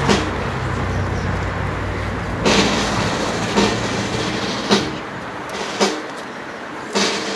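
A man reads out a speech through a loudspeaker.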